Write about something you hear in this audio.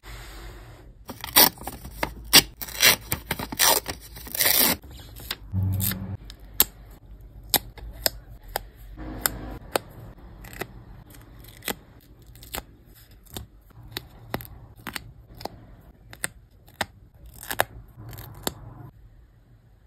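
Paper stickers crinkle and rustle as they are peeled from a sheet.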